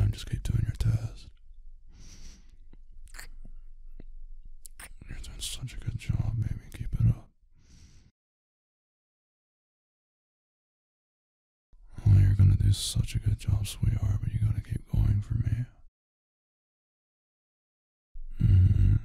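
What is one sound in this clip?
A young man speaks softly and teasingly in a low voice, close to a microphone.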